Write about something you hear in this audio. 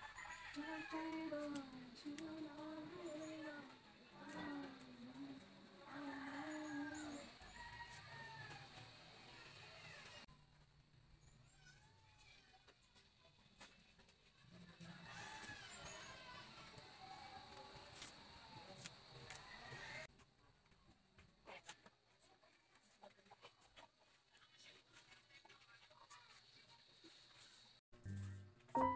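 Leafy stems snap and rustle as they are picked by hand.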